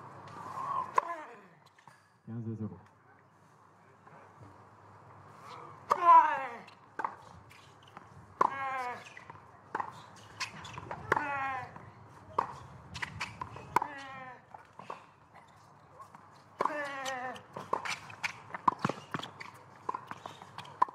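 A tennis ball is struck hard by rackets, back and forth.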